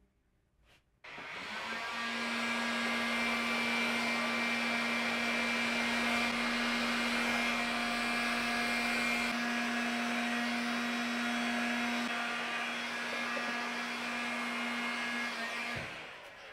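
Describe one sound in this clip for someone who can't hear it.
A heat gun blows with a loud, steady roar and hum.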